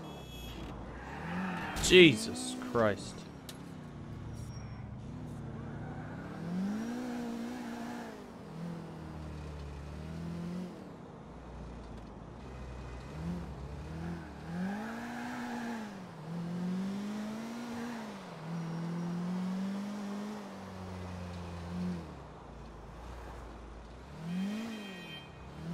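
A car engine revs up and down as it drives.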